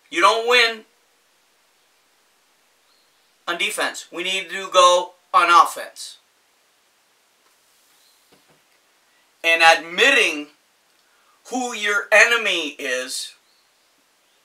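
A middle-aged man talks animatedly close by, in short bursts with pauses.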